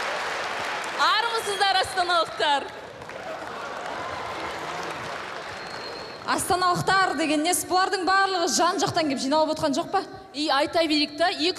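Young women sing together into microphones through loudspeakers.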